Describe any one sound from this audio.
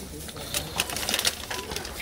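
A plastic glove crinkles.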